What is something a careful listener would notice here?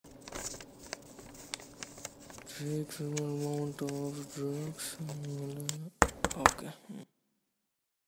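Paper crinkles and rustles as a man folds it.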